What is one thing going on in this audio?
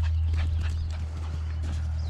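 A dog's paws patter across dry dirt.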